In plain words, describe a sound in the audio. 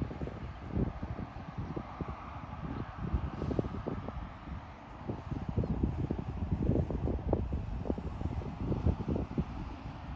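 Wind blows across an open field outdoors.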